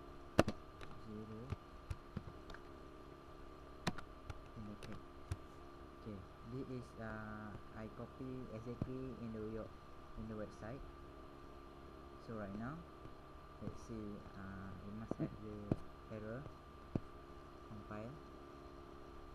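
A young man speaks calmly through a computer microphone.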